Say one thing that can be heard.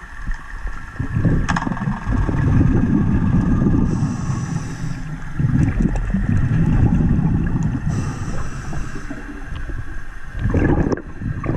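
Water churns and rumbles, heard muffled underwater.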